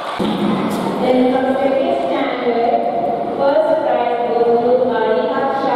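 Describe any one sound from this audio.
A woman reads out loudly to an audience in an echoing hall.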